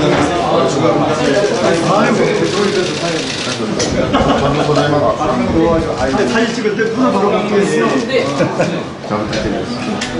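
A middle-aged man speaks warmly while greeting people.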